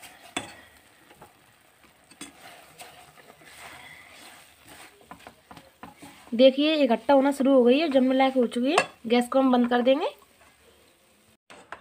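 A silicone spatula scrapes and stirs a thick coconut mixture in a nonstick pan.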